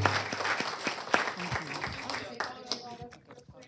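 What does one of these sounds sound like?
A group of people applaud in a large room.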